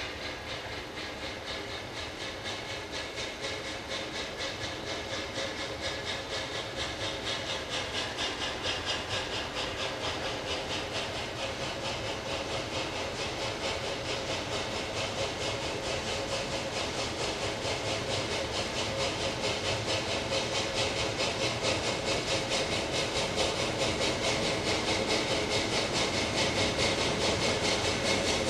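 A steam locomotive chuffs in a fast, steady rhythm, growing louder as it approaches.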